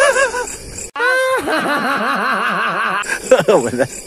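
A boy laughs loudly and shrieks.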